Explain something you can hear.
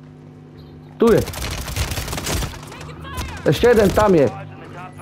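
A gun fires in rapid bursts close by.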